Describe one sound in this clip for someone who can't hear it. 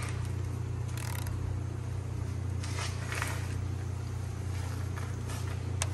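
A ratchet wrench clicks as a bolt is turned.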